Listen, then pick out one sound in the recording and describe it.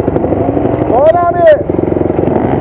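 A dirt bike engine revs up sharply and drops back.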